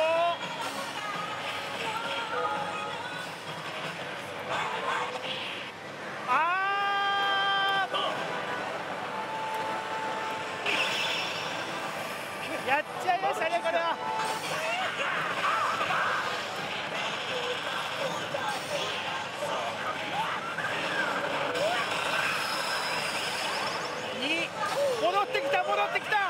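A slot machine plays loud electronic music and sound effects.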